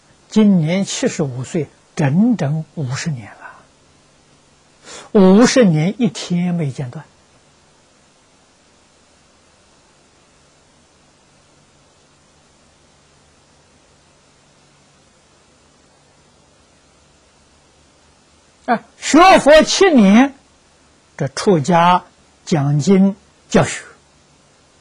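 An elderly man speaks calmly into a close microphone, pausing for long silences.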